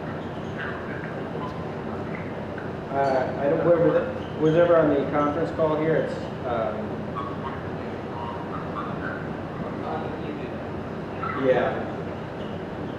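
A man speaks calmly through a microphone and loudspeakers in a large echoing hall.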